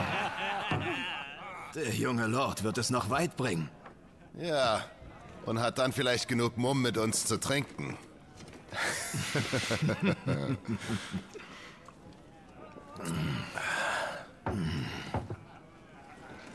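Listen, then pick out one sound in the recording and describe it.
Two men talk and joke with each other.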